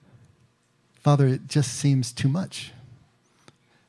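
A middle-aged man speaks into a microphone with animation, close by.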